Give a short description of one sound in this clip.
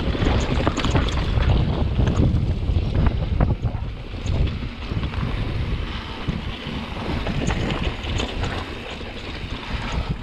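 Wind rushes past, buffeting loudly.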